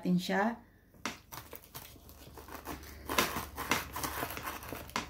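A pizza cutter rolls and crunches through a crispy crust.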